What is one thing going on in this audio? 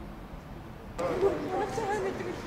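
A young woman speaks close by.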